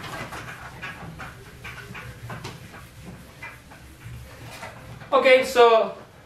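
A young man speaks nearby, quietly at first and then loudly and clearly.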